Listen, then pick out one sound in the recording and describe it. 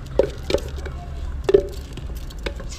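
Rice pours from a plastic bag into a pot of liquid.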